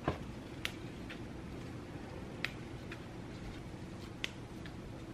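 Fresh herb leaves are plucked from their stems with small, crisp snaps.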